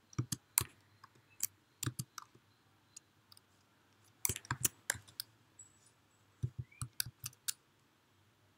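Keyboard keys click in quick bursts.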